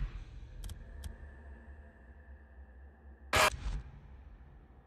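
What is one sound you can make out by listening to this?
Short electronic menu clicks sound.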